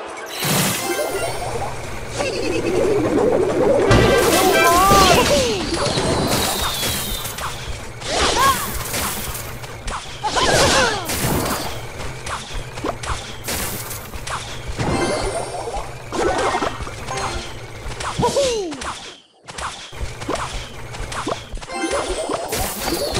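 Game music plays steadily throughout.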